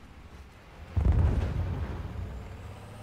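A tank cannon fires with a deep boom.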